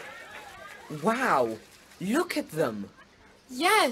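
A boy exclaims with excitement.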